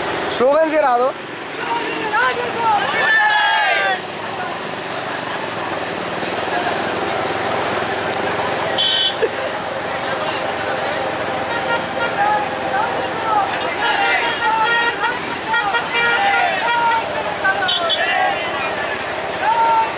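Many motorcycle engines rumble as they ride past close by.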